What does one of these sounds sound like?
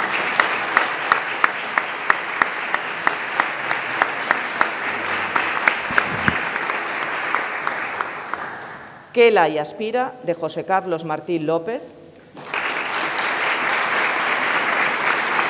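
An audience applauds with steady clapping in a large room.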